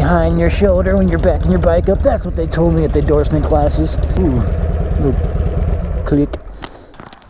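A motorcycle engine rumbles and revs up close.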